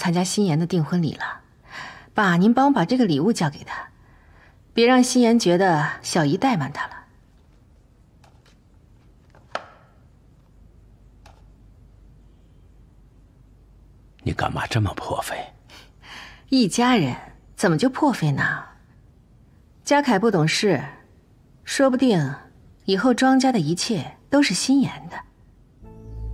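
A woman speaks warmly and calmly, close by.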